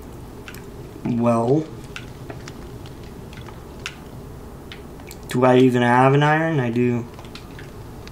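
A man speaks briefly and expressively into a close microphone.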